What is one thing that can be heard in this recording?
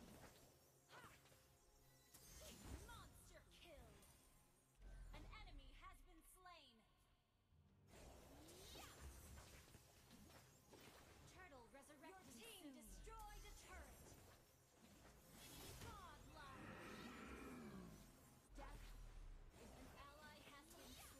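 Game battle sound effects swoosh and clash.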